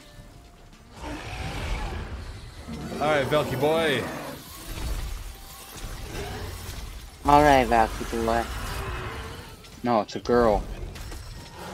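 Weapons clash and thud in a game's battle.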